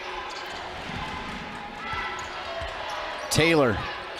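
A basketball thumps on a hardwood floor as a player dribbles.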